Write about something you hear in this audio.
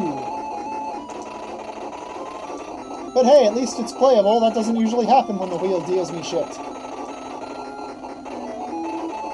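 Electronic game music plays throughout.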